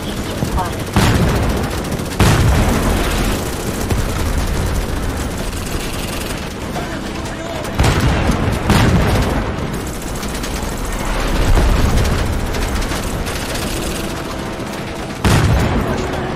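Explosions boom with deep rumbling blasts.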